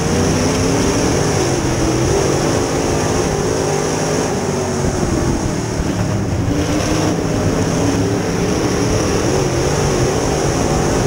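A race car engine roars loudly close by.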